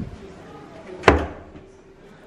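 A cupboard door clicks open.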